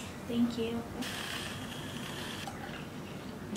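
A milk frother whirs briefly.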